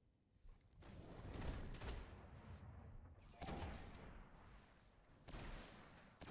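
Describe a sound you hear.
Gunshots crack and echo.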